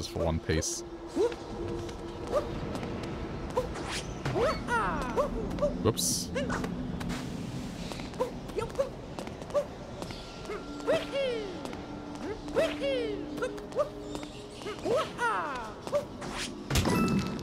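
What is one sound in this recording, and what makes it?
A cartoon character jumps with short springy bounce effects.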